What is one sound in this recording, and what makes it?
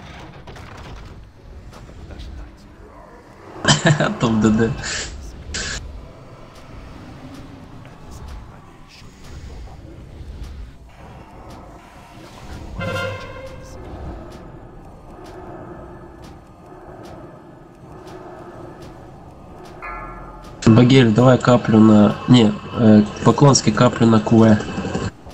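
Magic spells crackle and burst in a fantasy battle.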